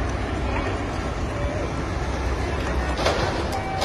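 A truck drives past on the street.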